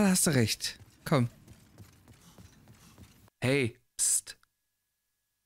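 A man speaks expressively into a close microphone, with pauses.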